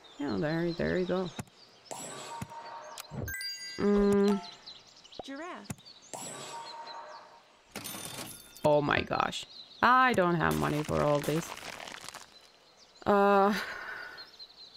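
Cartoonish game sound effects chime and pop.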